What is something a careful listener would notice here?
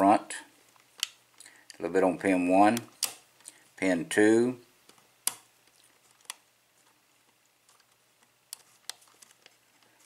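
A lock pick and tension wrench click inside a lock cylinder.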